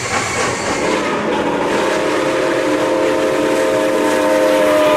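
A steam locomotive's whistle blows long and steady.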